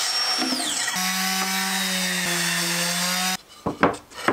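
An orbital sander hums steadily.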